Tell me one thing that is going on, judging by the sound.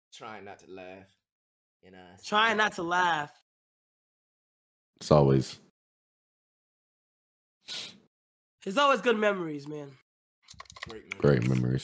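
A young man talks with animation into a microphone, in short loud bursts.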